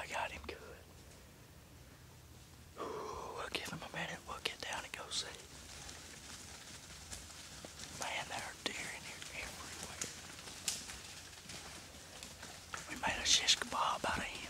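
A young man whispers close by, in short bursts.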